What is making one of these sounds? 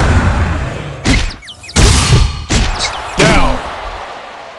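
Heavy punches land with loud impact thuds.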